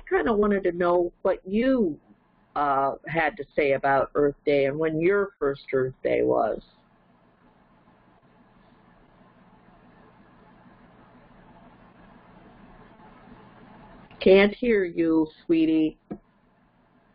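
An elderly woman talks with animation close to a headset microphone.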